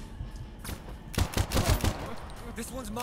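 Pistol shots crack loudly in quick bursts.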